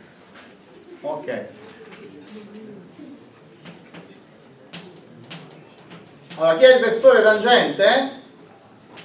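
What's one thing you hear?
A man speaks in a large room, with some echo.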